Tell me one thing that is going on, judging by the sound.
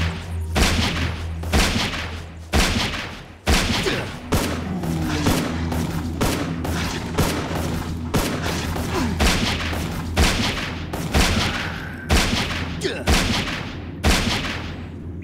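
Blades strike and slash in combat.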